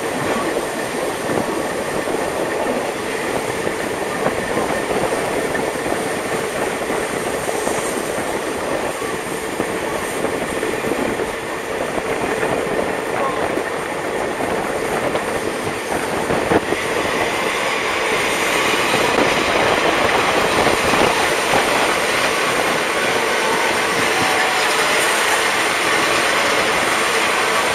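Wind rushes past outdoors, growing louder toward the end.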